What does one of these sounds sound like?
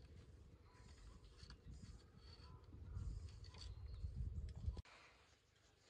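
Bamboo poles knock and creak as they are tied together.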